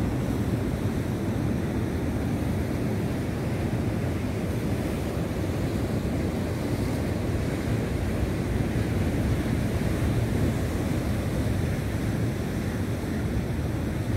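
Waves crash and wash over rocks close by.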